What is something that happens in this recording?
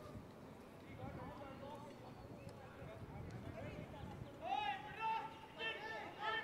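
Young men call out and shout to each other across an open outdoor field.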